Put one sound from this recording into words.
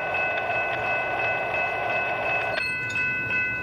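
A train approaches from far off.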